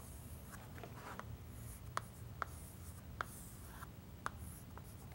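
Chalk taps and scrapes against a board.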